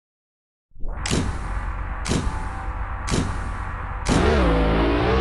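Countdown beeps sound four times, one second apart.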